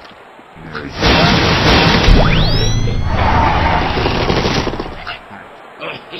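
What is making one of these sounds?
A cheerful jingle plays with chimes.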